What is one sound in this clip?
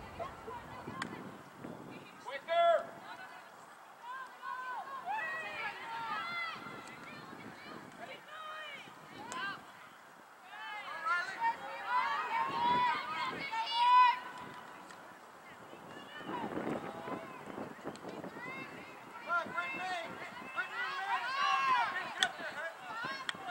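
Young female players call out to each other across the field.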